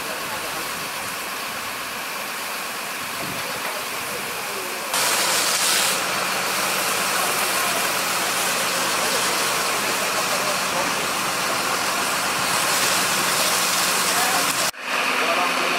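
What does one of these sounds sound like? A fire crackles and roars steadily.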